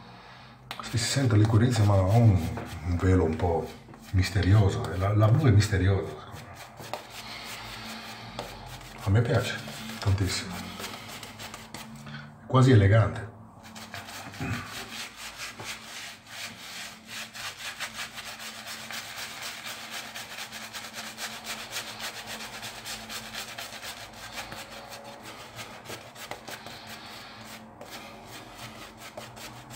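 A shaving brush swirls lather over a stubbly face.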